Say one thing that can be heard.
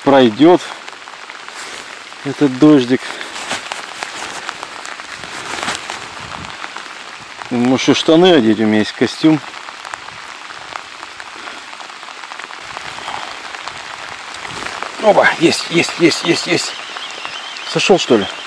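Rain patters steadily on the surface of a lake outdoors.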